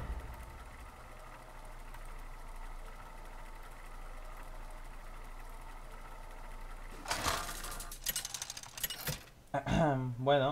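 A game's spinning wheel whirs steadily.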